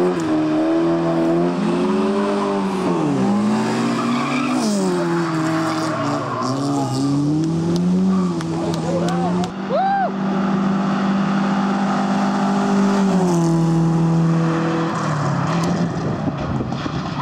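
A rally car engine revs hard and roars through the gears.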